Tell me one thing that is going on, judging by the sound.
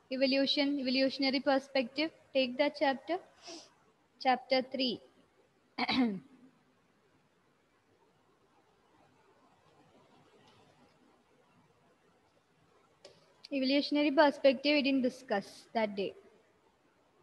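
A young woman speaks clearly into a headset microphone, in bursts with pauses.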